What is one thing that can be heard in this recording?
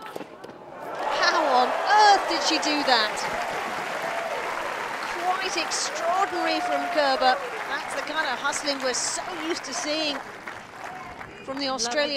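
A crowd applauds and cheers.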